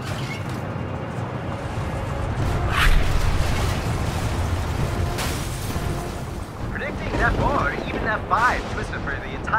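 Strong wind roars and rumbles outdoors.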